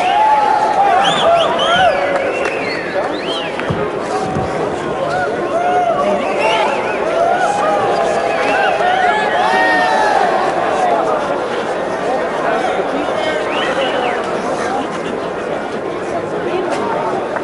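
A large crowd cheers and whistles in an echoing arena.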